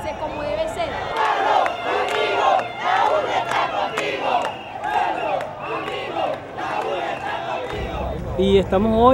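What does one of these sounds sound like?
A large crowd of young people chants and sings loudly outdoors.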